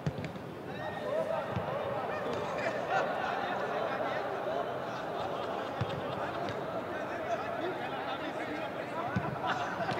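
Many men's voices chatter and call out across a large open space.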